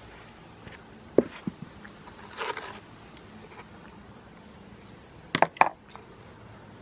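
A metal trowel scrapes and taps wet cement against a pot.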